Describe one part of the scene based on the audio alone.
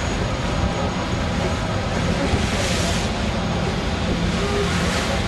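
A boat's engine roars as it speeds past.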